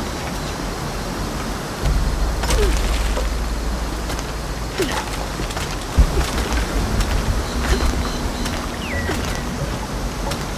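Hands and feet scrape against rock while climbing.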